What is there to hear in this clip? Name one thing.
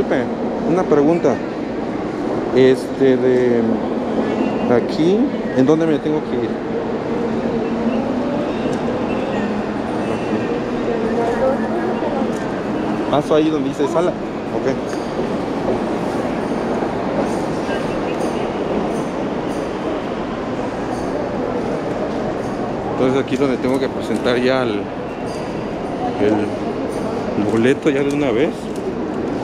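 A young man talks calmly close by, muffled by a mask.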